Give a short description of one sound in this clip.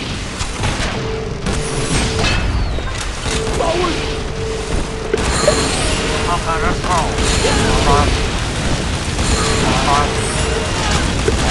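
Explosions and blasts boom again and again in a game.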